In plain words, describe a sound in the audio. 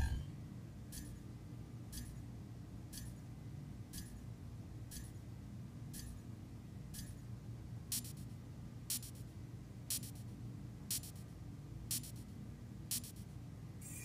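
A countdown timer beeps once every second.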